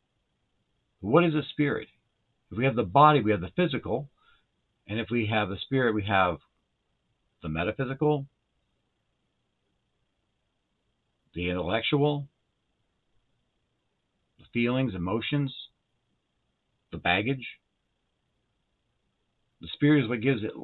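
A middle-aged man speaks calmly and with pauses, close to a microphone.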